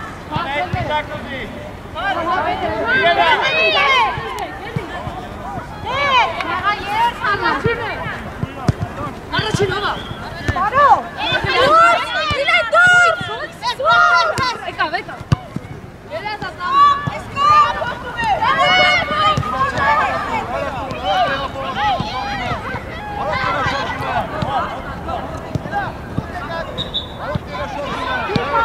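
Young women shout and call to each other on an open playing field.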